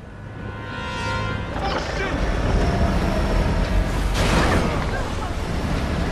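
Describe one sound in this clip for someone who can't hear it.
Loud crashes and blasts rumble nearby.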